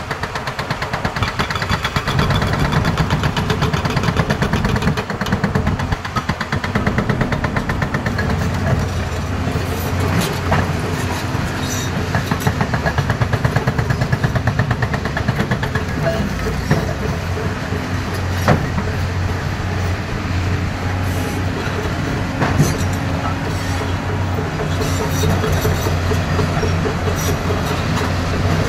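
A heavy excavator engine rumbles steadily close by.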